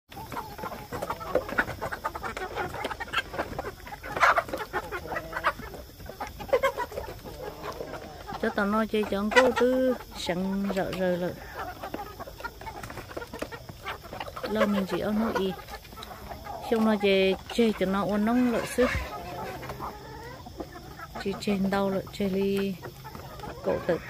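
Chickens cluck and squawk close by.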